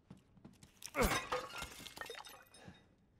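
A vase shatters loudly.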